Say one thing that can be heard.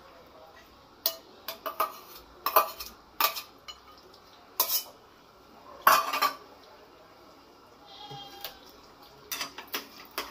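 A metal spatula scrapes and clinks against a cooking pot.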